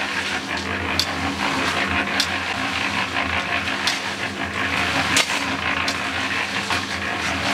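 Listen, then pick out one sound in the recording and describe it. A shovel scrapes and crunches into gravel.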